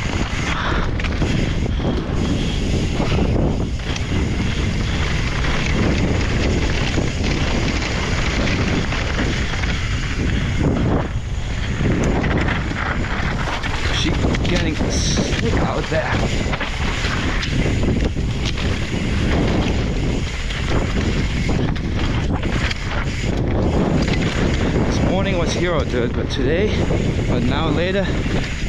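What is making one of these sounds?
Mountain bike tyres crunch and rattle over dirt and gravel.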